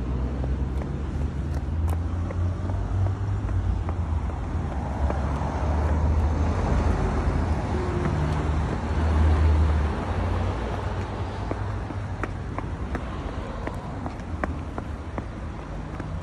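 Small shoes patter on pavement as a young boy walks.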